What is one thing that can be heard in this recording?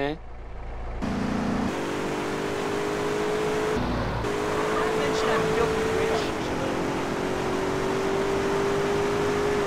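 A car engine hums steadily as the car drives along a street.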